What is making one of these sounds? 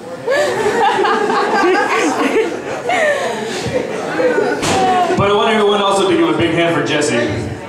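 A young man raps rapidly into a microphone through loudspeakers.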